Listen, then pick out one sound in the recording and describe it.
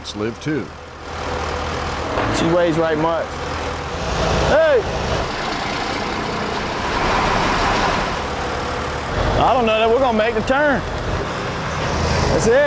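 A heavy truck engine rumbles and strains.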